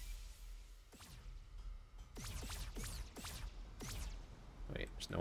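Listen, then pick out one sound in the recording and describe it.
Magical whooshing sound effects sweep down in quick succession.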